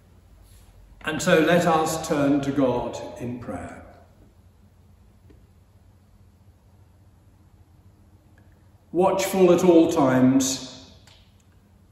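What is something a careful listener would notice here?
An elderly man intones words in a slow, chanting voice close to a microphone, in an echoing hall.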